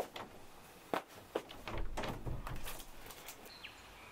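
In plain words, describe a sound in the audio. A curtain rustles as it is pulled aside.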